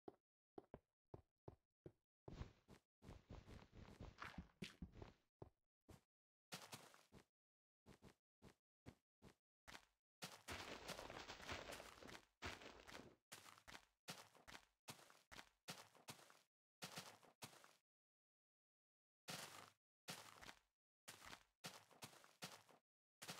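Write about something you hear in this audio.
Footsteps crunch through snow and then thud on grass in quick bursts.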